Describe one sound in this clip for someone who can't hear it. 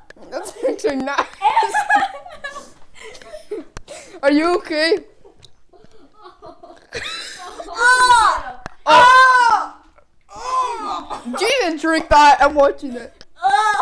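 A boy laughs loudly.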